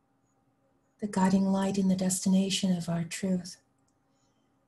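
A woman speaks close to a microphone.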